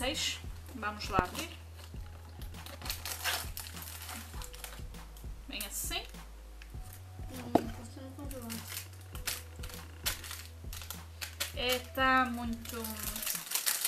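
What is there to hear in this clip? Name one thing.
Cardboard packaging rustles and crinkles in a young woman's hands.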